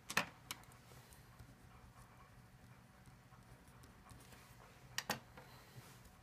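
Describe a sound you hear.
A pen taps on paper.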